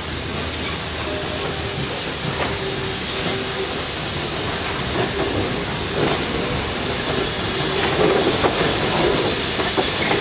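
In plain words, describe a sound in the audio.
A steam locomotive chugs slowly past close by.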